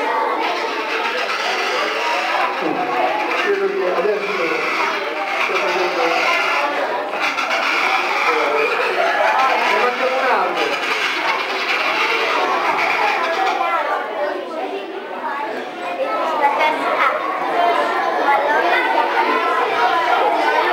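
A man speaks steadily into a microphone, heard through loudspeakers in a hall.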